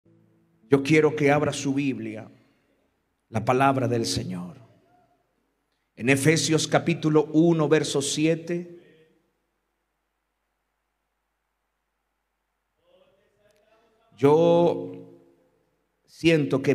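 A middle-aged man speaks with emphasis into a microphone, in short phrases with pauses.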